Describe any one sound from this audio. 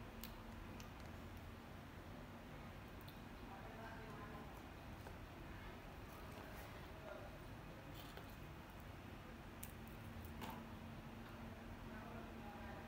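A small monkey munches and crunches on apple slices.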